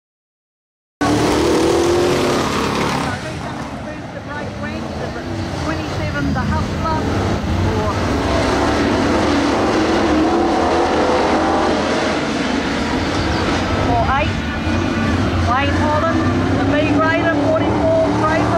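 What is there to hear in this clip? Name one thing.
Race car engines roar.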